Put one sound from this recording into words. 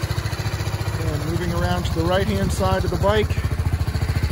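A motorcycle engine revs up briefly several times.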